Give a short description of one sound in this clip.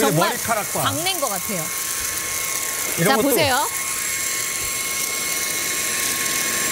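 A cordless vacuum cleaner whirs steadily close by.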